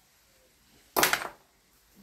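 A hand knocks against a plastic tool casing.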